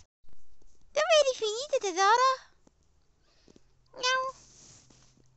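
A cat meows loudly several times, close by.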